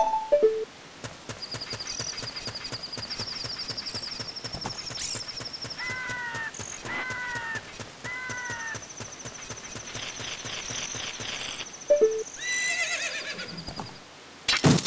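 A game character's footsteps patter quickly over stone.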